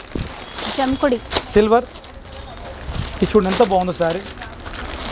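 Cloth rustles as it is unfolded.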